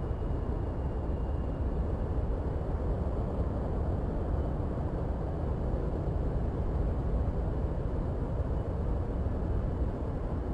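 A jet engine rumbles steadily from inside a cockpit.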